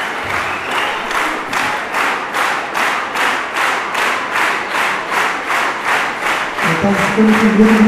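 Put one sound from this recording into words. An audience claps together in a steady rhythm.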